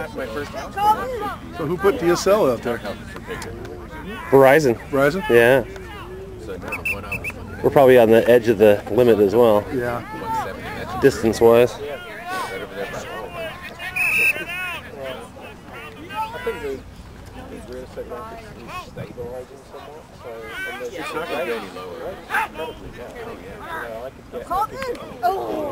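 Young players shout and call to each other outdoors.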